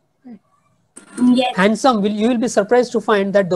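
A young girl speaks with animation over an online call.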